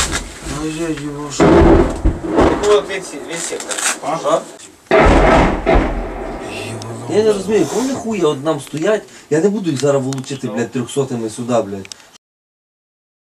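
A group of men talk loudly and animatedly close by.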